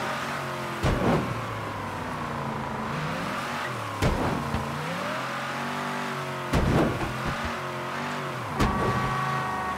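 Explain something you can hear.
A car thuds over bumps with loud knocks.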